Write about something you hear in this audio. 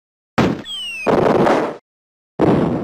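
A wooden hut blows apart with a loud blast.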